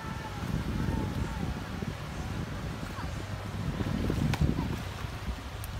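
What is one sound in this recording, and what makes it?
Water splashes softly as children play in a pool.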